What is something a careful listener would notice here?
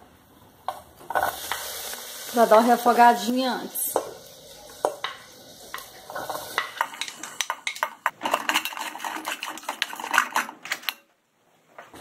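A plastic spatula scrapes and taps against a metal pot.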